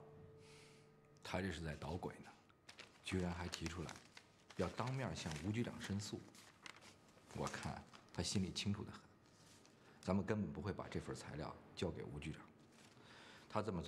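A middle-aged man speaks calmly and earnestly, close by.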